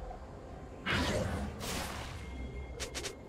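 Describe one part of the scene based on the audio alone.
Game spell effects burst with loud whooshing blasts.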